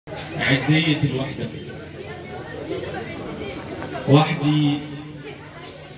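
A young man recites with feeling into a microphone, heard through loudspeakers in an echoing room.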